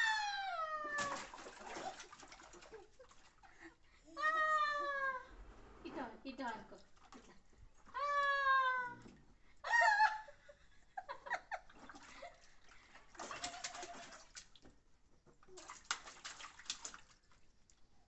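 Water splashes in a tub.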